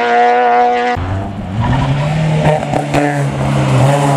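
A rally car's engine growls low and climbs as the car approaches through a bend.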